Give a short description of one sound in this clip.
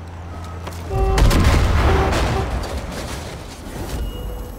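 A vehicle explodes with a loud, booming blast.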